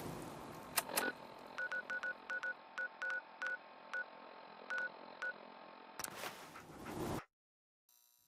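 A small electronic device beeps and clicks rapidly.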